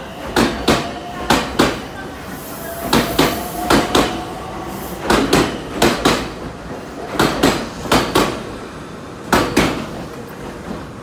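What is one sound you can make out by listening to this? A train's motor hums steadily as it passes.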